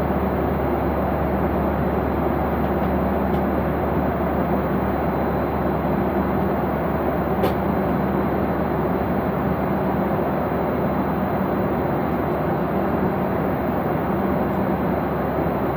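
An aircraft cabin hums with a steady, loud engine roar.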